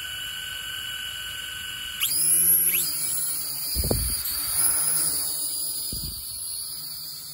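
A small drone's propellers whir with a high, steady whine.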